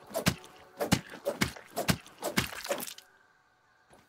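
A tool strikes repeatedly with sharp thuds.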